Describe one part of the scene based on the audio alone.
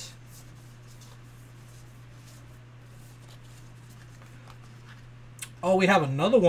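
Paper cards rustle and slide against each other in a hand.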